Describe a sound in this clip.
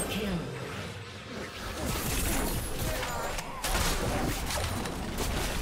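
Game spells crackle and burst during a fight.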